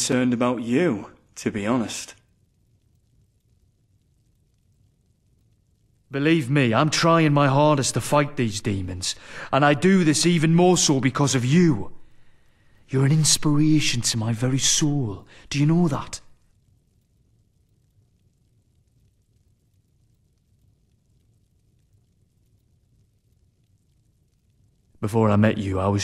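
A man speaks calmly and warmly, close by.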